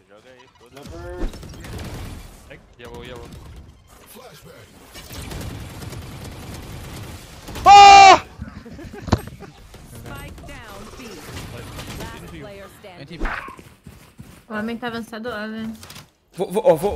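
A young man speaks excitedly into a microphone.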